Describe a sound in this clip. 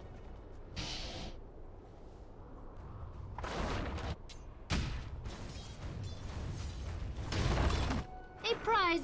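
Magic spells whoosh and blast in short, loud bursts.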